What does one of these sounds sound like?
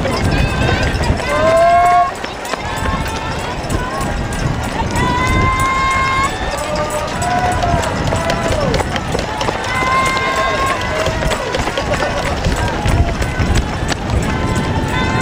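Many runners' footsteps patter on the road.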